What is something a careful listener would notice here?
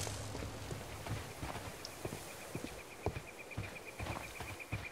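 Footsteps crunch steadily on a path.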